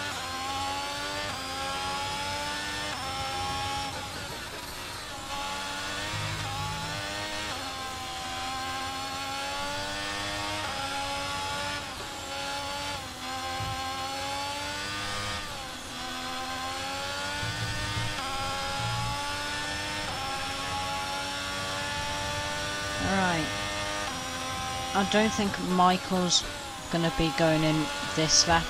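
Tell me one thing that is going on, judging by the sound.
A racing car engine screams, rising and falling in pitch as gears shift up and down.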